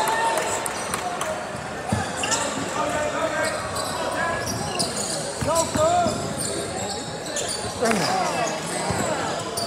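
A crowd of spectators cheers and shouts in an echoing gym.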